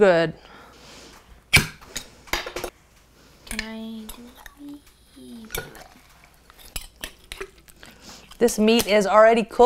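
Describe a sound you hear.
A metal spoon clinks and scrapes against a glass jar.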